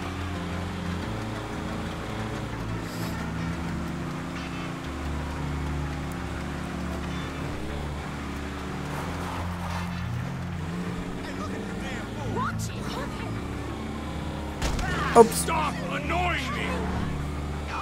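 A truck engine rumbles steadily and revs up and down.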